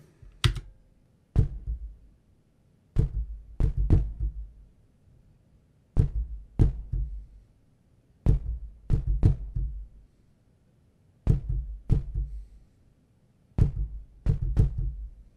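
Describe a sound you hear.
A keyboard plays punchy electronic drum hits in a slow, steady beat.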